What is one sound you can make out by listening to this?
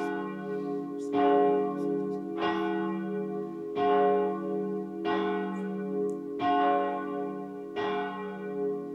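A pipe organ plays slow, sustained chords that ring out in a large echoing hall.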